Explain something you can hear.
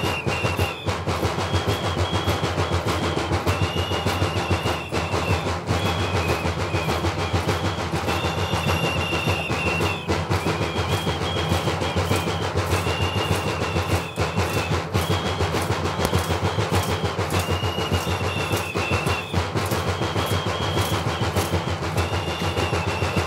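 Small bells jingle along with the dancing steps.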